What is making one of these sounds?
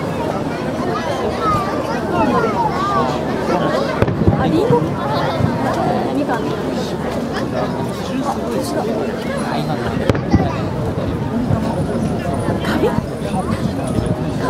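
Fireworks crackle and sizzle after bursting.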